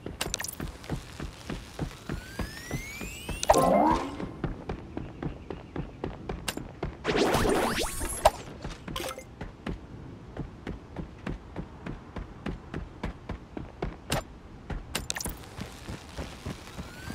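Footsteps patter quickly and steadily on pavement.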